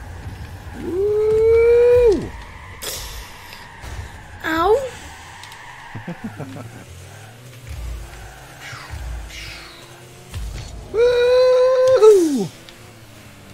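A young boy talks and exclaims excitedly.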